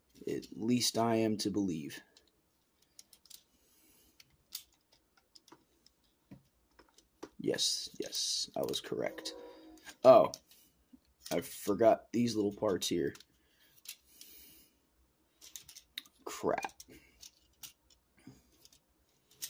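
Small plastic parts click and snap as a toy is twisted and folded by hand.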